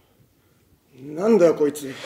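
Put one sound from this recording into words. A young man exclaims loudly and briefly.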